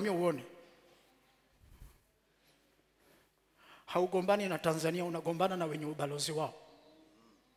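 A man preaches with animation through a microphone.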